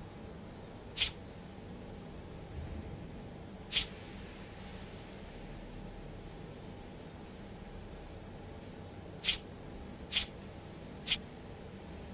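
Game pieces click sharply as they turn, a few times.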